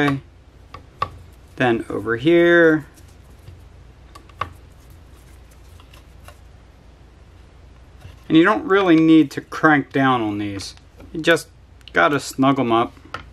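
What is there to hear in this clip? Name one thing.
A screwdriver turns small screws, clicking faintly.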